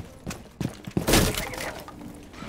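A wooden barricade is smashed apart with a loud crack.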